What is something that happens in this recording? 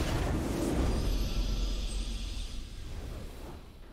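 A triumphant game fanfare plays at the end.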